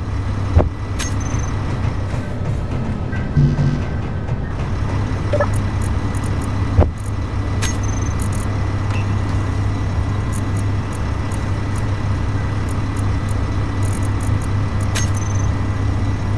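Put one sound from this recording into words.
Short electronic beeps chime as menu items are clicked.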